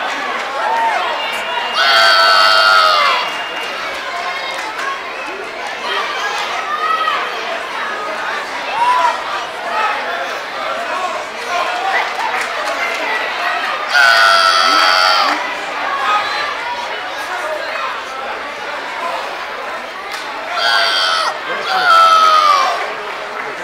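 A crowd of children and adults murmurs and chatters in the background.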